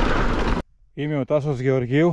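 A middle-aged man speaks close to the microphone.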